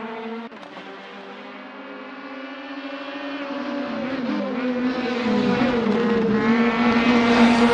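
Racing car engines roar, growing louder as the cars approach.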